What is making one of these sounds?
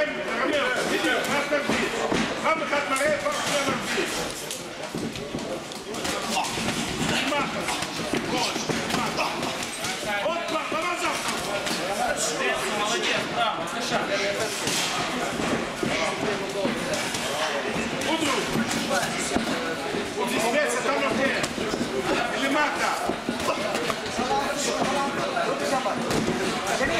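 Shoes squeak and shuffle on a padded floor.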